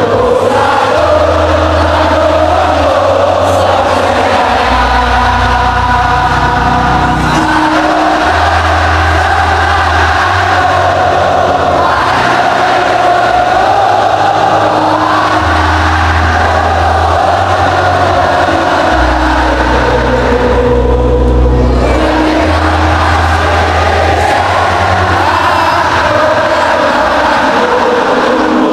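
A large crowd of fans chants and sings loudly in unison.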